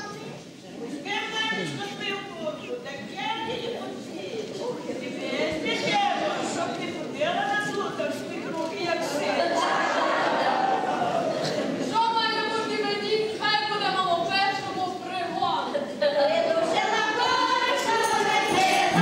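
A choir of women sings a folk song together.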